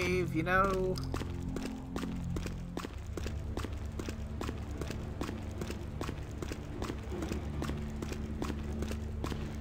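Footsteps tread steadily across a stone floor in a large echoing hall.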